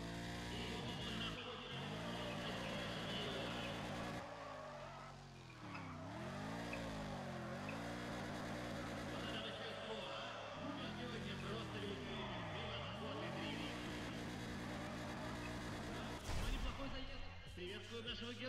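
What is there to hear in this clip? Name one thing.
Tyres squeal on asphalt during a drift.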